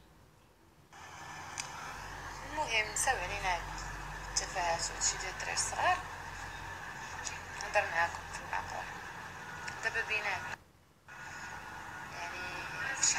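A young woman speaks with animation close to a phone microphone.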